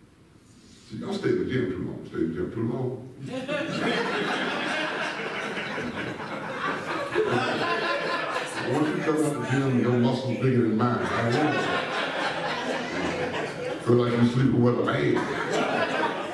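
A man preaches loudly through a microphone in a large echoing hall.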